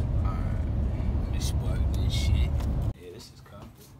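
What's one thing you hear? A car's engine and road noise rumble low and steady from inside the cabin.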